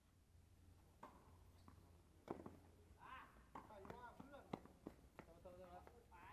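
Tennis balls are struck by rackets with sharp pops.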